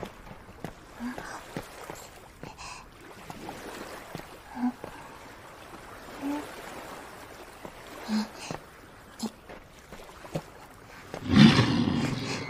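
Footsteps scramble over rocks.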